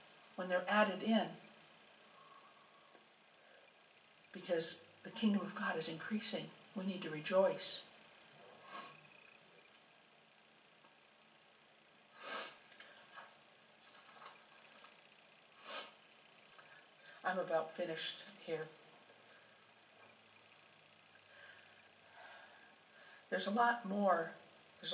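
A middle-aged woman speaks calmly into a microphone, with long pauses.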